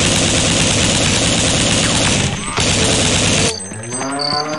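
A machine gun fires in rapid, loud bursts.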